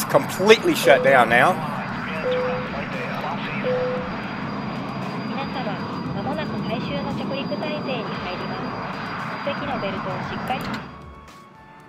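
A jet engine roars steadily, then cuts off.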